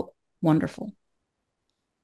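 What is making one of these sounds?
A man speaks briefly into a close microphone over an online call.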